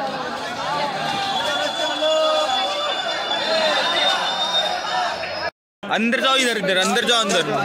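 A crowd of young men chatters outdoors.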